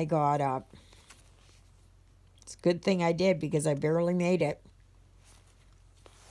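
Thread pulls softly through stiff canvas.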